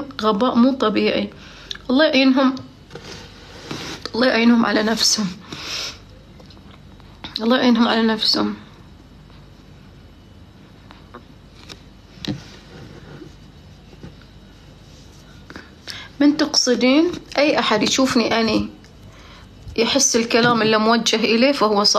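A woman speaks close to a microphone in short bursts with pauses.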